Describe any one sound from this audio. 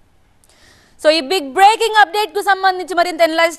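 A man speaks clearly into a close microphone.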